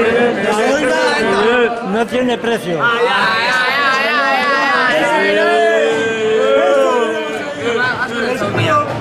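A crowd of young men sings and chants loudly close by.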